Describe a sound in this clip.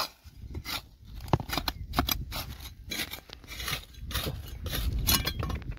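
A small trowel scrapes and digs into dry, stony soil.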